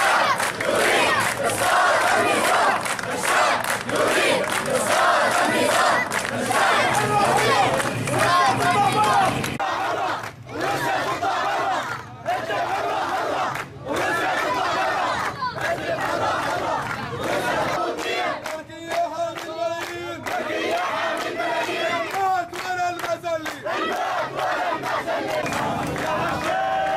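A crowd of men and children chants loudly together outdoors.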